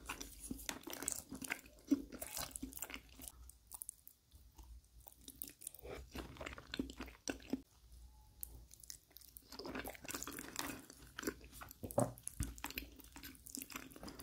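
A wooden fork scrapes and taps on a plate.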